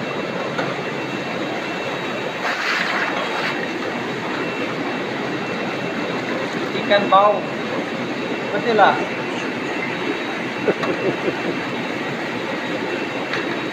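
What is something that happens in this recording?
Plastic bags rustle.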